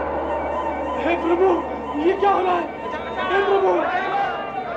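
A man cries out with anguish.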